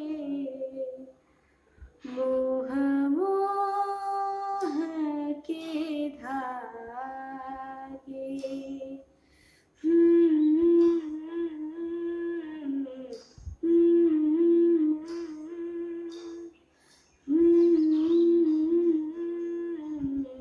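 A young woman sings a slow melody close to the microphone, holding long notes with pauses between phrases.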